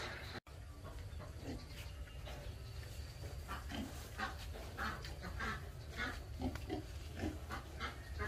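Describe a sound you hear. Several pigs grunt and squeal close by.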